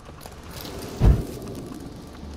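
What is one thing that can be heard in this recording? A wooden door thuds shut.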